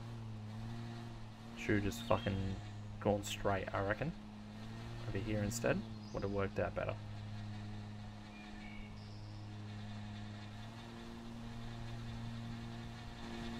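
A lawn mower engine hums steadily.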